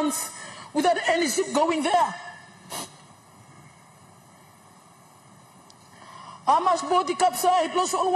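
A woman speaks firmly into a microphone, pausing between phrases.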